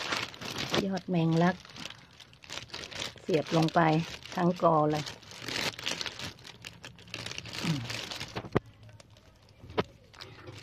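Plastic sheeting crinkles and rustles close by.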